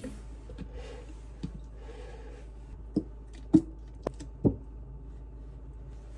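Milk glugs as it is poured into a plastic container.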